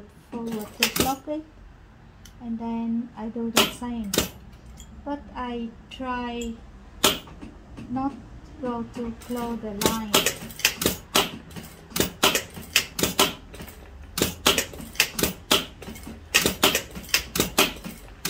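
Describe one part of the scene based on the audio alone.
A sewing machine runs and stitches.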